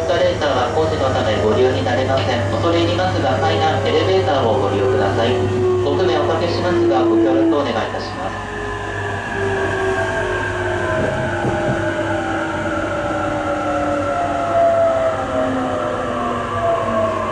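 Wheels of an electric commuter train rumble over rails, heard from inside a carriage.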